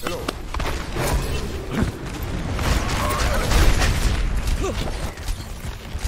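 Video game energy blasts crackle and whoosh.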